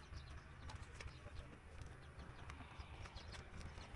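A bicycle rolls over rough concrete.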